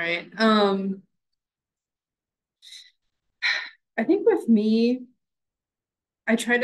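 A woman speaks calmly in short phrases over an online call.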